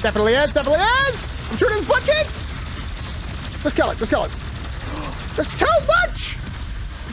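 A young man shouts excitedly into a microphone close by.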